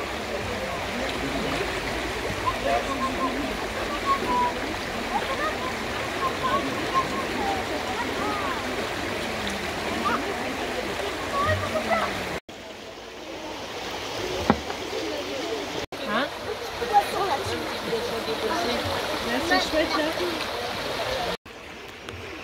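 Children chatter and call out in the distance outdoors.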